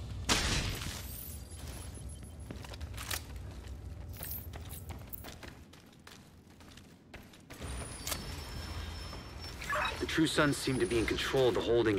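Footsteps tap and crunch over a littered hard floor.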